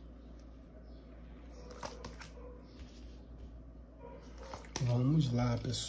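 Cards tap and slide softly on a table.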